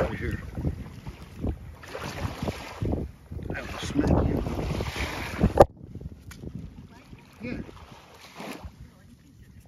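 Small waves lap gently at the shore close by.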